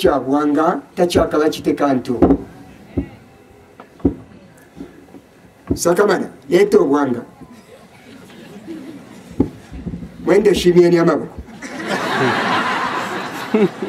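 A man preaches loudly and with animation through a microphone, with pauses between phrases.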